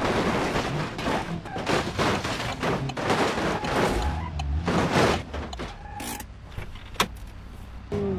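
Metal crunches and bangs as cars crash and roll over.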